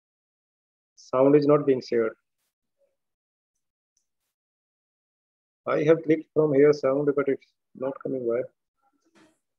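A middle-aged man speaks calmly over an online call, in short phrases with pauses.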